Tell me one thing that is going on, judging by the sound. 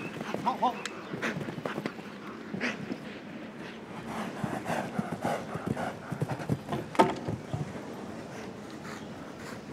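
A horse's hooves thud on soft turf.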